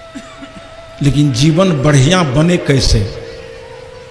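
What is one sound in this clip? An elderly man chants briefly in a wavering, drawn-out voice.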